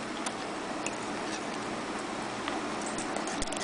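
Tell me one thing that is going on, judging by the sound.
A dog's teeth click against a metal fork.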